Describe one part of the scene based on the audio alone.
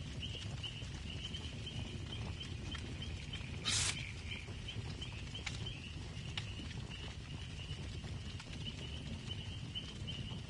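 A campfire crackles and pops steadily.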